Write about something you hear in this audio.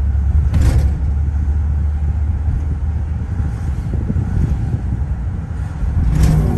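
Another car drives past close by.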